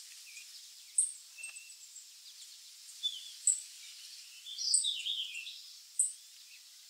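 A robin gives sharp, high chirps.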